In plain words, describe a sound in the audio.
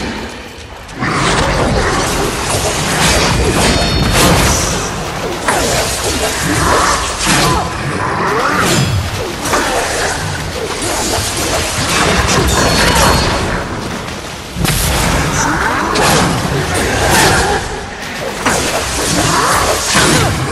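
Blades clash and slash in fast bursts.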